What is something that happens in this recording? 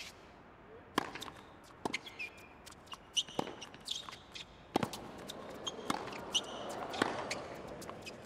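A tennis ball is struck back and forth with sharp pops of a racket.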